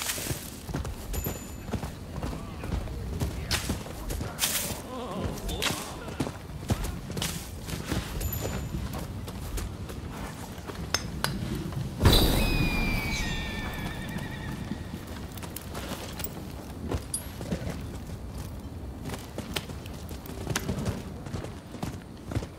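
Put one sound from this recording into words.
Horse hooves pound on the ground at a gallop.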